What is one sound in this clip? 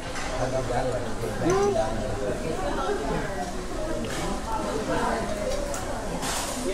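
Many people chatter in a busy indoor space.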